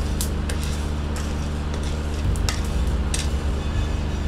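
A wooden spatula scrapes and stirs dry beans in a metal pan.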